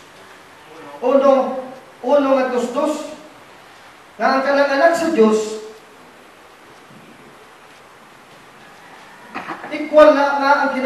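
A man speaks loudly in short phrases in a slightly echoing room.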